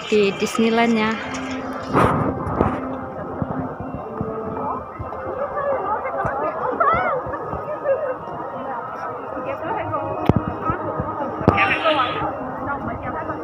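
A crowd of people chatters outdoors in the open.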